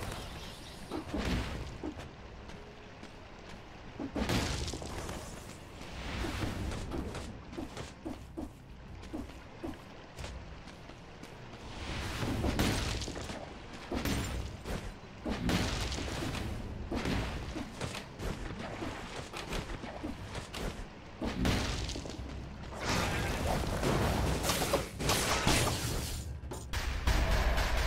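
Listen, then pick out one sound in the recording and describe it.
Game sound effects of sword slashes and impacts ring out in quick bursts.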